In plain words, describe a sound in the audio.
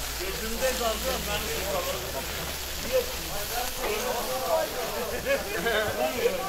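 Meat sizzles over hot coals.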